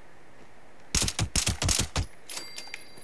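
A gun fires a quick burst of loud shots.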